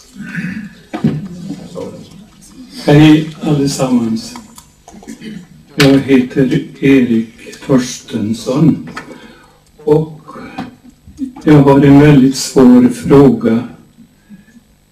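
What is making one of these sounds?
An elderly man speaks calmly into a microphone in a hall with an echo.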